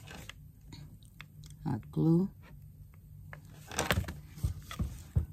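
Small craft pieces rustle and tap as hands handle them.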